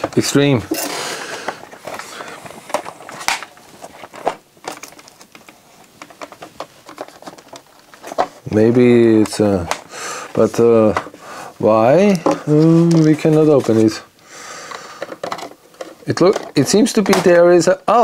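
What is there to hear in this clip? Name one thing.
Hard plastic parts click and rattle as they are handled.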